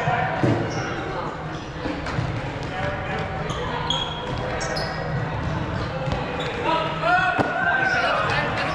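Young people shout and call out to each other during play.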